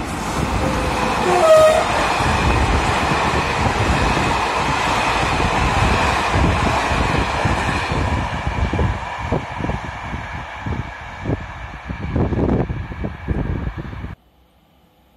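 A train rolls past close by with a steady roar.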